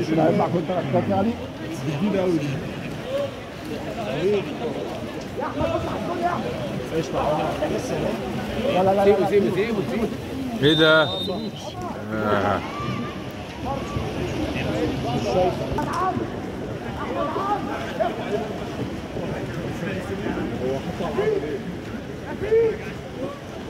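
Players splash through water.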